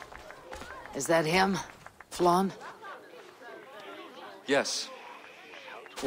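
A young woman asks questions calmly.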